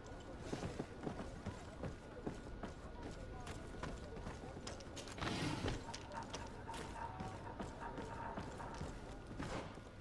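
Footsteps run across wooden boards.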